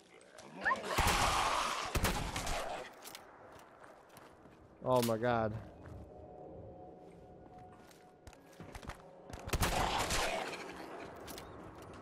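A shotgun fires loud blasts that echo and roll away.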